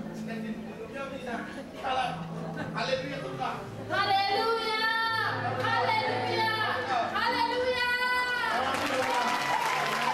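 A woman shouts with excitement into a microphone.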